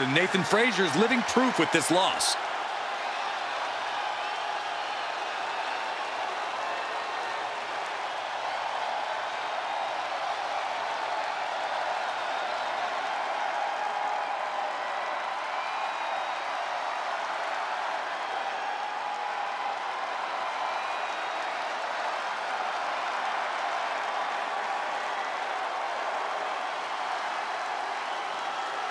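A large crowd cheers steadily in a big arena.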